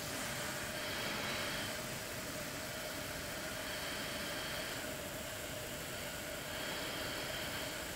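Air hisses steadily through a breathing mask close by.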